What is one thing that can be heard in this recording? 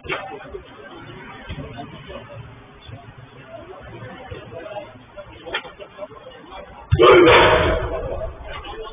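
Young men shout and call out across a large echoing hall.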